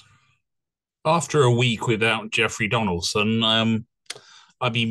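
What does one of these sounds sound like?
A man speaks calmly, close to a microphone over an online call.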